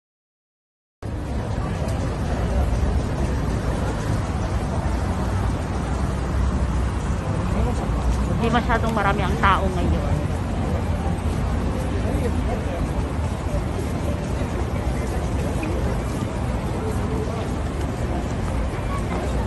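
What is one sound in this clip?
A large crowd murmurs outdoors in a busy street.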